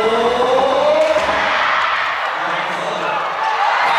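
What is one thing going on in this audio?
A volleyball is struck by hands in a large echoing indoor hall.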